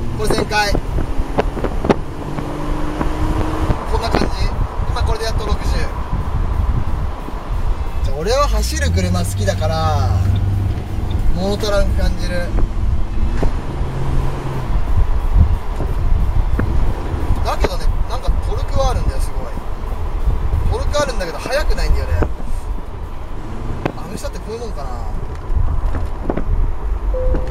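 Wind rushes loudly past an open car.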